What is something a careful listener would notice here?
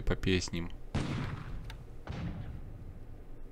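Naval guns boom in a bombardment.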